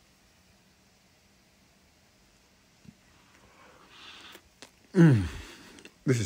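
A man chews food noisily with his mouth full.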